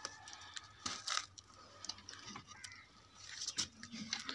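Pigeons peck at grain in a dish.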